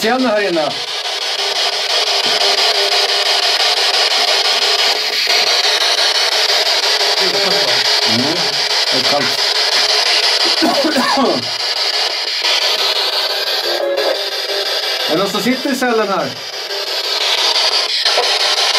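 A handheld electronic device hisses with steady static.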